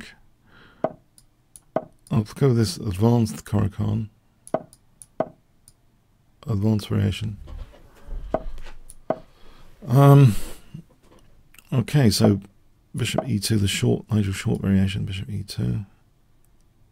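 An older man talks with animation into a close microphone, pausing now and then.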